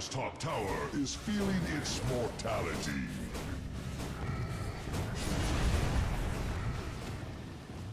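Game spells crackle and blast in a fight.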